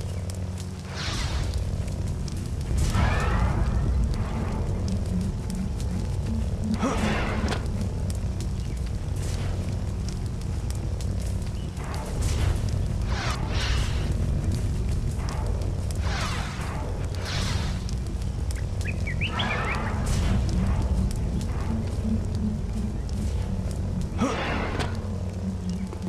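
A lightsaber swooshes as it swings.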